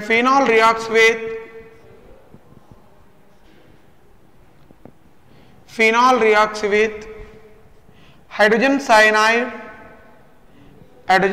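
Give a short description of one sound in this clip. A man speaks clearly and steadily into a close microphone, in short bursts with pauses.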